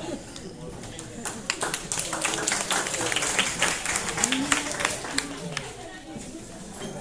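Young women chatter quietly nearby in a room.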